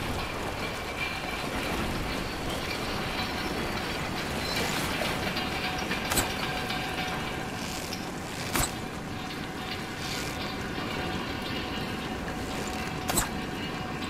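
A metal lift rumbles and rattles steadily as it rises on chains.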